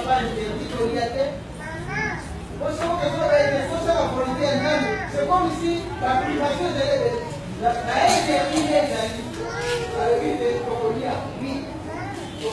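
A crowd of women talk and murmur nearby in a large, echoing room.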